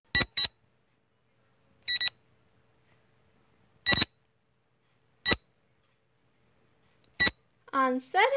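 A countdown timer beeps with short, sharp beeps about every two seconds.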